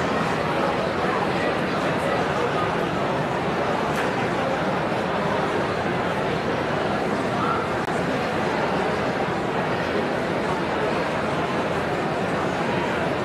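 A large crowd chatters and murmurs in an echoing hall.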